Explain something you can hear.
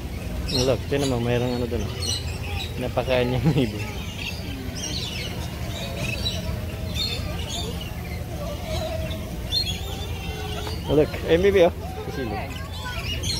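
A young woman talks excitedly nearby.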